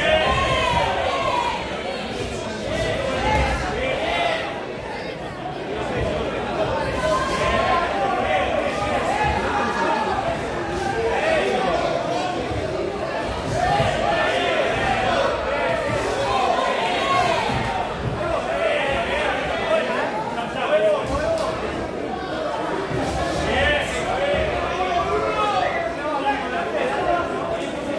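A crowd shouts and cheers throughout an echoing hall.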